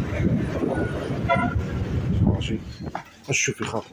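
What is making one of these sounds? Traffic rumbles along a street outdoors.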